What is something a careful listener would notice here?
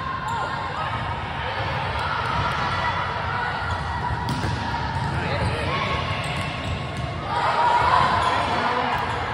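Young girls call out and shout to one another in a large echoing hall.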